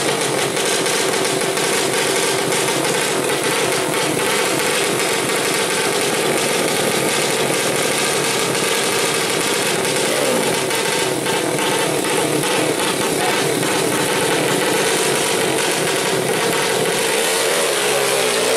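Small motorbike engines rev loudly and rattle nearby.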